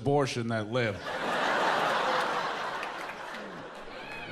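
An audience laughs loudly in a large room.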